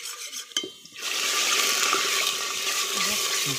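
Spices sizzle loudly in hot oil.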